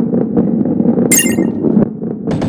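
A chime rings.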